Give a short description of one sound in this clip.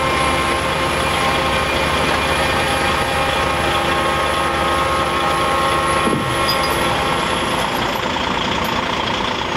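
A crane engine hums steadily.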